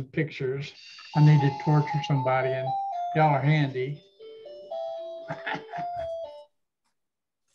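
An older man talks with animation over an online call.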